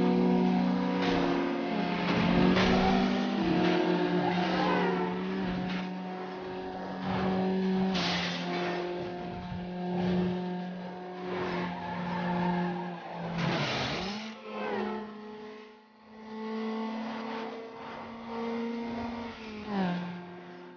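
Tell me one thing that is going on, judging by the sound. A racing car engine roars at high revs, dropping in pitch as it shifts gears.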